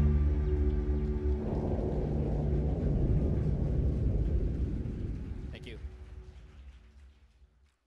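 A man speaks through a microphone over loudspeakers.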